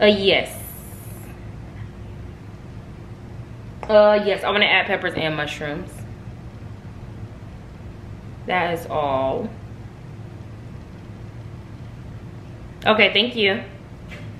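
A young woman speaks close by in short, exasperated bursts with pauses between.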